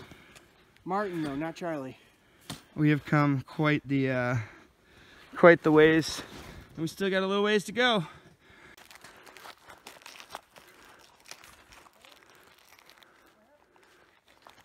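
Boots crunch and squeak in deep snow.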